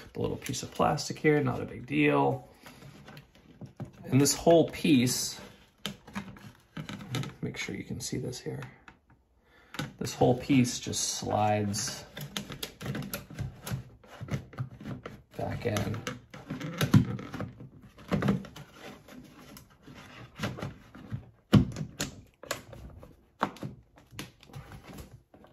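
A plastic device clicks and knocks against a wall mount.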